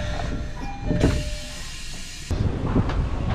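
A train rumbles along with a low steady roar.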